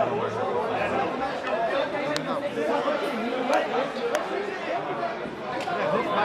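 A crowd of men chatter loudly close by.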